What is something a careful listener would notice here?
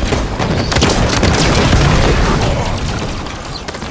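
An explosion booms and debris scatters.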